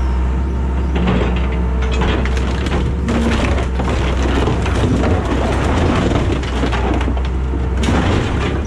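Metal crunches and scrapes as an excavator claw tears at an old bus.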